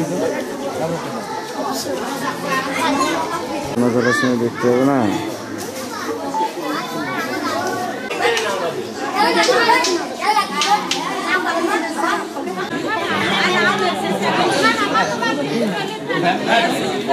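A crowd of men and women chatter nearby, outdoors.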